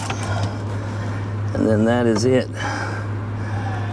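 A metal motor housing clicks and scrapes as it is pulled off its mount.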